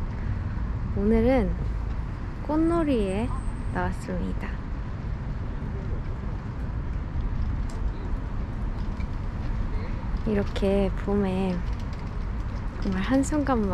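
A young woman speaks softly and cheerfully close to a microphone.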